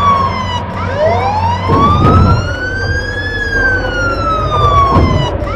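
A fire engine siren wails, rising and falling in pitch.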